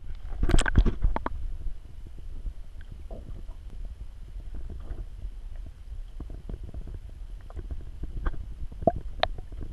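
Water murmurs dully, heard from under the surface.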